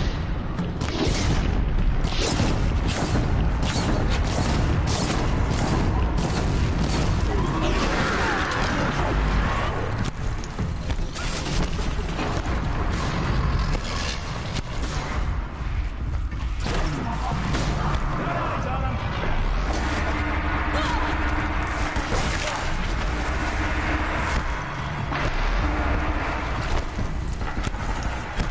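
Shots and explosions crackle in rapid bursts.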